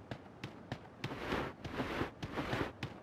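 Grass rustles as something crawls through it.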